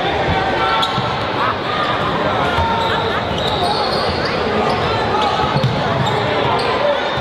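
A basketball bounces with dull thumps on the floor.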